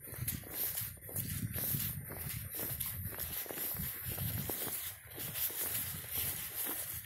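Footsteps crunch through dry leaves and grass.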